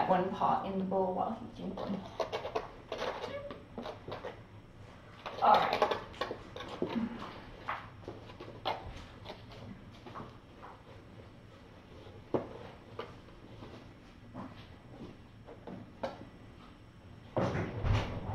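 Kittens' paws scratch and thump on cardboard.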